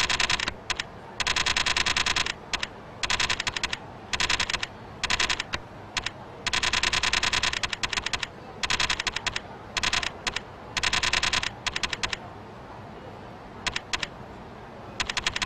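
A game menu ticks rapidly as its cursor scrolls through a list.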